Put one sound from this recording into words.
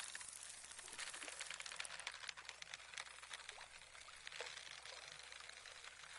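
A fishing reel clicks rapidly as line is wound in.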